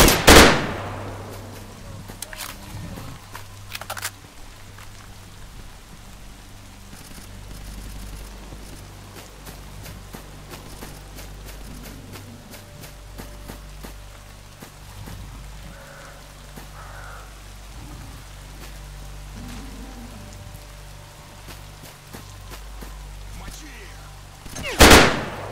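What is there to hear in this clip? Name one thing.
A rifle fires loud shots that echo outdoors.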